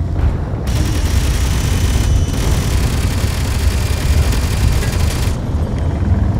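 Rocket thrusters roar with a loud hissing rush.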